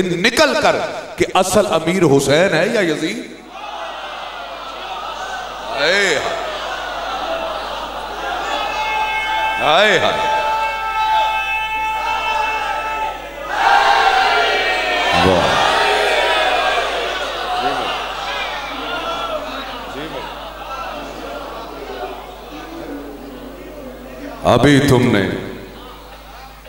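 A middle-aged man speaks with animation into a microphone, heard through a loudspeaker in an echoing room.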